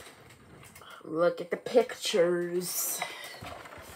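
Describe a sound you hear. A young girl reads aloud close by.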